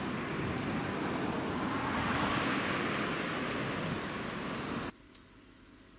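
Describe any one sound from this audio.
A river rushes and splashes steadily.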